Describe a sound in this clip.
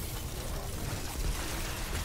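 A loud energy blast bursts and crackles.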